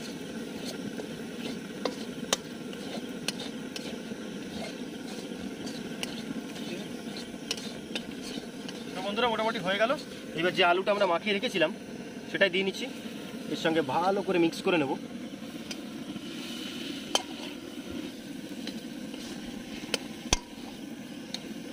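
Food sizzles and fries in a hot pan.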